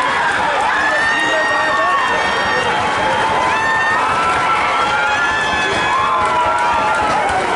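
A crowd of spectators shouts and cheers from the sidelines outdoors.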